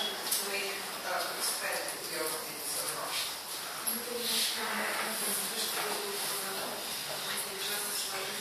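A woman speaks calmly to an audience, a little distant, in a room with some echo.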